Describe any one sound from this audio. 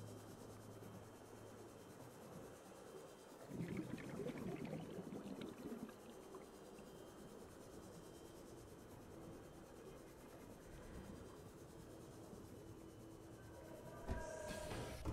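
An underwater vehicle hums steadily.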